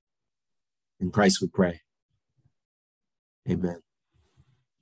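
A middle-aged man speaks calmly and close by, with pauses between short phrases.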